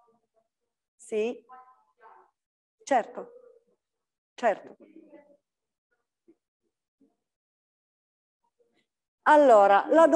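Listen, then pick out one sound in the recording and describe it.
A middle-aged woman speaks calmly into a microphone in a large room, with long pauses.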